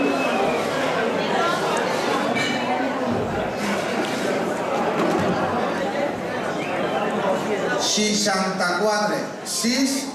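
Two men talk quietly close by.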